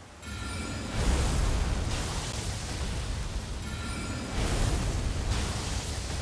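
A magic spell bursts with a loud whoosh.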